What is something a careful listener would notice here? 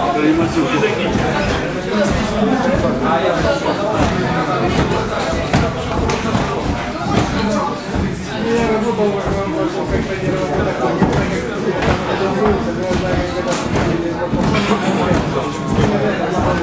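A crowd of onlookers chatters loudly in a echoing room.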